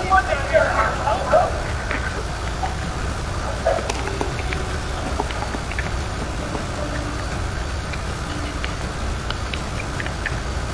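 A deep engine rumble drones steadily.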